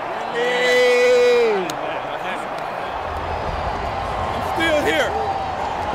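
A large stadium crowd roars in the background.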